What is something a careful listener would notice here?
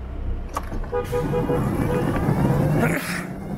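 A motorcycle engine revs up and rises in pitch as the motorcycle pulls away.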